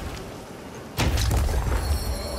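An arrow is loosed with a sharp twang and heavy thud.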